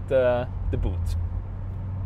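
A man speaks briefly and calmly, close by.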